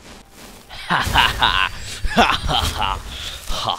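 Flames whoosh and burst.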